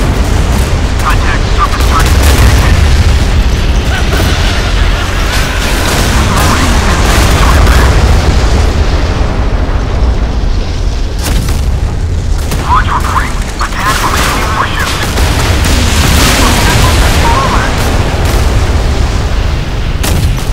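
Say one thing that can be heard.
Shells explode with deep, rumbling booms.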